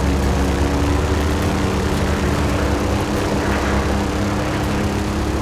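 A vehicle engine hums steadily at speed.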